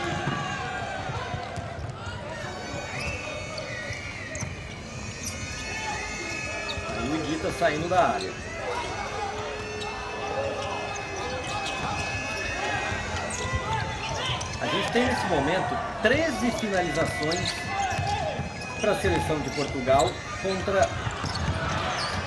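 A futsal ball is kicked across a hard court.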